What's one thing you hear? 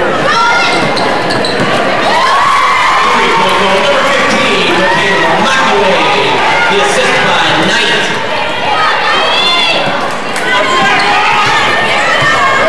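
A crowd cheers and shouts throughout in a large echoing hall.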